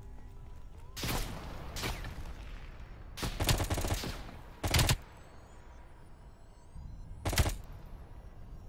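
A rifle fires short bursts of loud shots close by.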